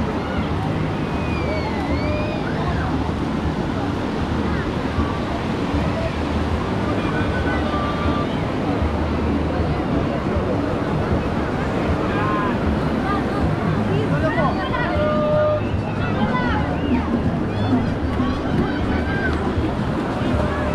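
Children shriek and call out in high voices.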